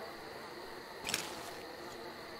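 A paper map is folded away with a sharp rustle.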